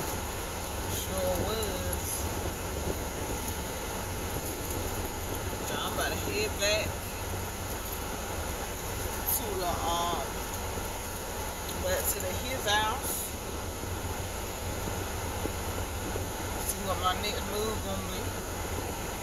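A young woman speaks close by in short, scattered bursts.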